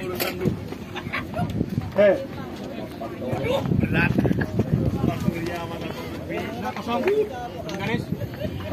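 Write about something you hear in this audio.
A crowd of young men and boys chatters and shouts nearby outdoors.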